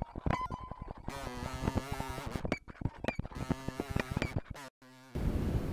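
A fly buzzes close by.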